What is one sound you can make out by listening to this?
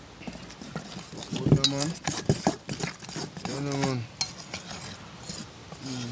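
A spoon scrapes and stirs flour in a metal bowl.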